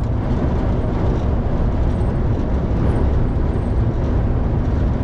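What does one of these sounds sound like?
A vehicle's engine hums steadily.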